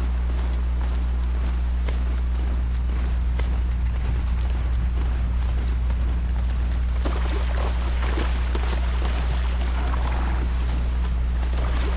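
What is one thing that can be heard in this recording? Mechanical hooves clatter steadily as a mount runs.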